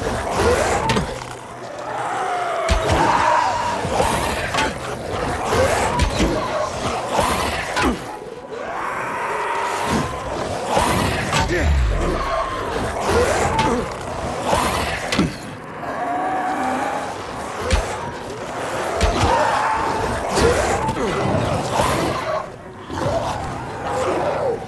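A crossbow fires with sharp twangs, again and again.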